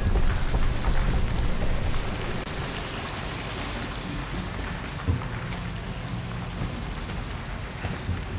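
Footsteps crunch and shuffle over loose rubble.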